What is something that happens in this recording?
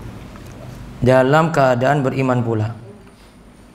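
A young man speaks into a microphone in a melodic, chanting voice.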